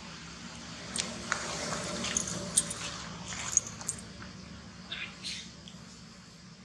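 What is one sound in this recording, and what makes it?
A small monkey rustles the grass and leaves as it moves.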